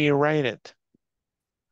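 A man speaks briefly through a headset microphone on an online call.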